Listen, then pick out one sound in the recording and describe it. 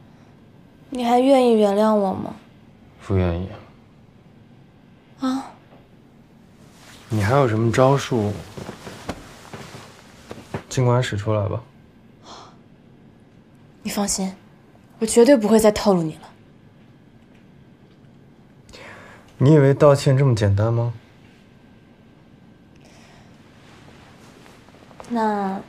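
A young woman speaks coldly, close by.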